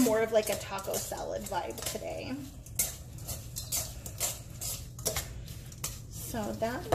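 Metal tongs clink against a metal bowl while tossing food.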